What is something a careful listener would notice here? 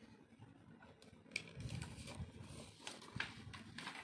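Paper rustles as a sheet is handled.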